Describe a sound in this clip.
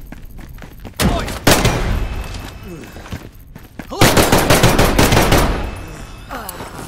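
Rapid gunfire rings out loudly, in bursts.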